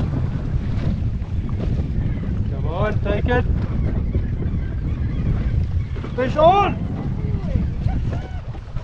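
Wind blows steadily across an open microphone outdoors.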